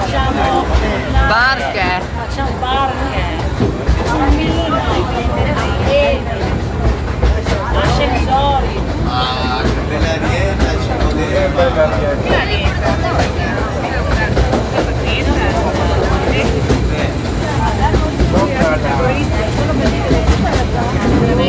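An open train rumbles and clatters steadily along its track.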